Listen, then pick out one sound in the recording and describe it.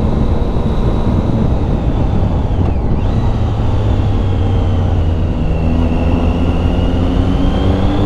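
Wind roars loudly against the rider.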